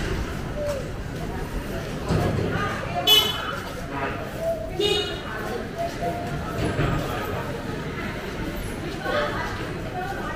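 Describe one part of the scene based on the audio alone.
A motor scooter hums past close by.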